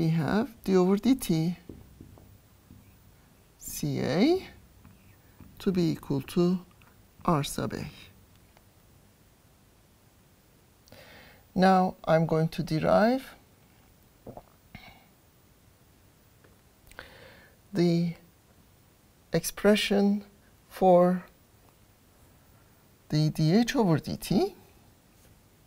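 An older woman speaks calmly into a close microphone, in short phrases with pauses.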